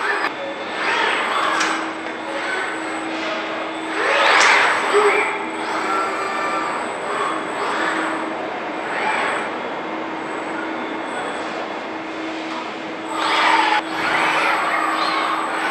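Robotic arms whir and hum as they move.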